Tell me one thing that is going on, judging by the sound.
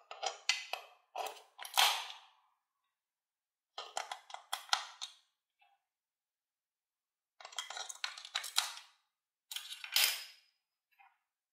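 Batteries click and rattle as they are handled in a plastic toy.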